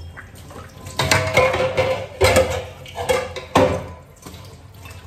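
Dishes clatter and clink in a sink.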